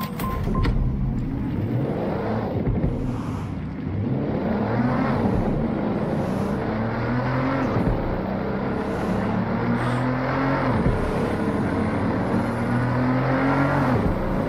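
A car engine revs up and down as it drives through the street.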